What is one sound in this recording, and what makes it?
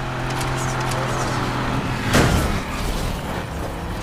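Tyres screech as a car drifts around a bend.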